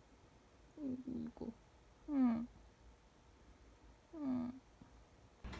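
A cat meows softly a few times.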